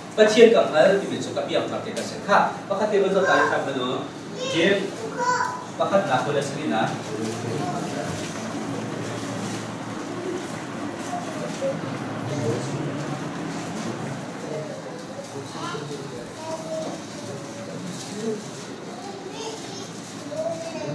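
A man speaks calmly to a room, in a slightly echoing space.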